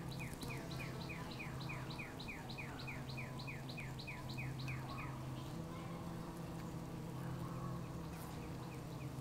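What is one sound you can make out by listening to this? Bees buzz in a low, steady drone close by.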